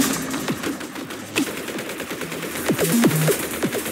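Game turrets fire rapid shots.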